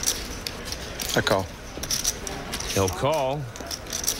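Poker chips click together on a table.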